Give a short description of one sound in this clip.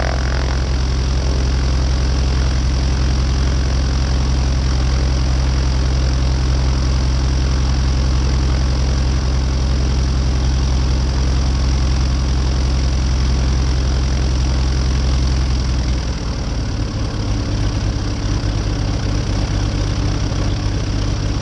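Wind buffets loudly against the plane's body.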